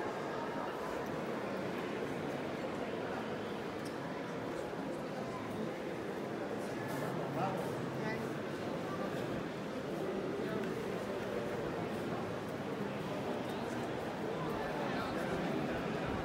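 A crowd murmurs and chatters steadily in a large echoing hall.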